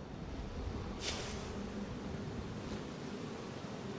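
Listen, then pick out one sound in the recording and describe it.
A fire flares up with a sudden whoosh and keeps crackling.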